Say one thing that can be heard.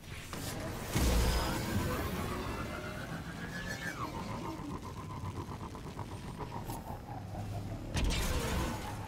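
A hover vehicle's engine hums and whines as it speeds along.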